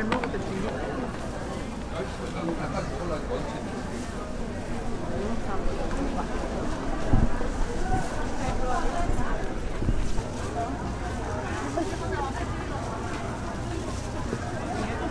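A knife chops through meat onto a wooden board with dull thuds.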